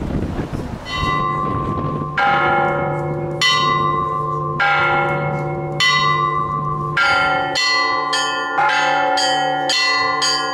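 Church bells ring out loudly in a quick pattern, their tones ringing on.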